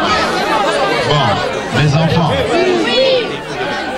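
A middle-aged man speaks loudly into a microphone.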